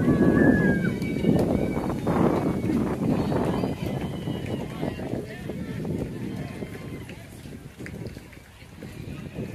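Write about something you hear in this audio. Young players and adults shout and cheer outdoors nearby.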